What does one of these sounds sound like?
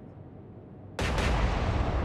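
A large naval gun fires with a deep boom.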